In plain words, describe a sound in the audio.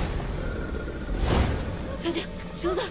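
A young woman shouts urgently, close by.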